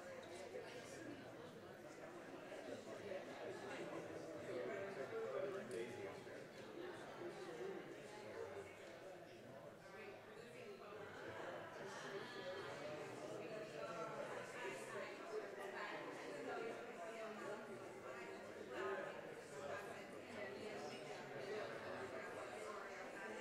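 Adults and a child talk at a distance in a large echoing hall.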